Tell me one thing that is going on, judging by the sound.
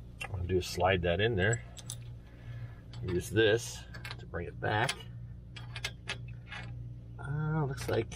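Small metal parts clink against each other.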